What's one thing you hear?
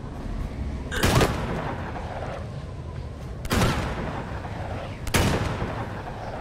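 Gunshots bang sharply a few times.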